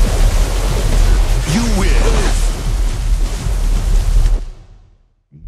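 Heavy rain pours down steadily.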